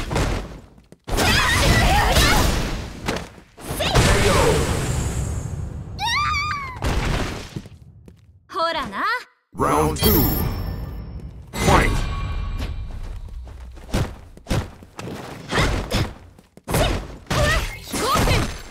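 Punches and kicks land with heavy impacts.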